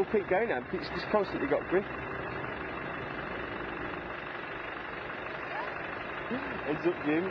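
A vehicle engine hums under load.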